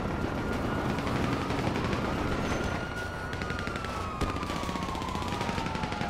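Footsteps run across a hard rooftop.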